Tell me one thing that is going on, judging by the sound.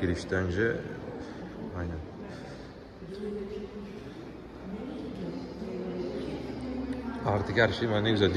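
A man speaks calmly nearby in an echoing hall.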